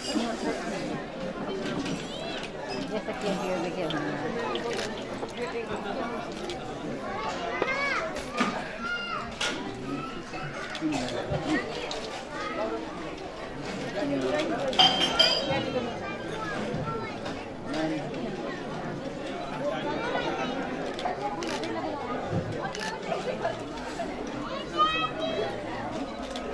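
A crowd of men and women chatter nearby throughout.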